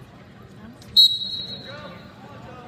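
A referee blows a sharp whistle in a large echoing arena.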